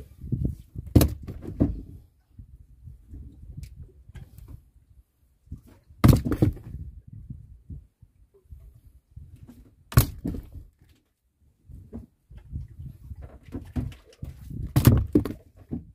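Fish thud onto a wooden boat deck.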